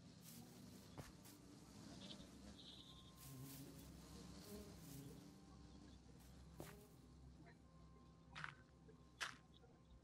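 Blocks are placed and broken with short dull knocks.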